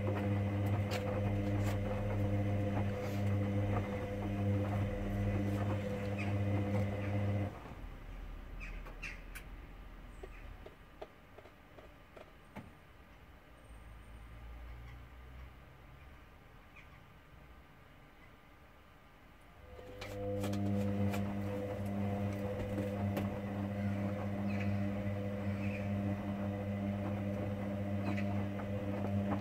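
A washing machine motor hums steadily as the drum turns, stops, then starts again.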